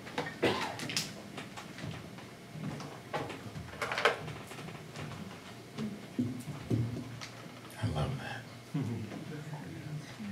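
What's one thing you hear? An acoustic guitar strums.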